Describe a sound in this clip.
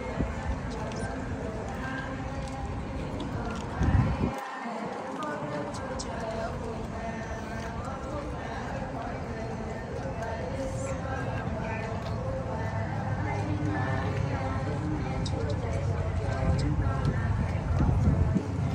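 A crowd of men and women murmurs and chats nearby outdoors.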